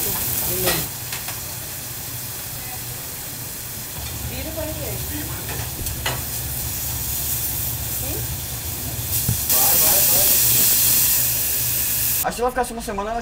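Meat sizzles on a hot griddle.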